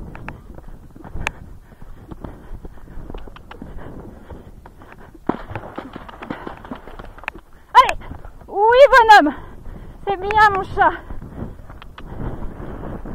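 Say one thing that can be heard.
A horse's hooves thud on soft ground at a canter.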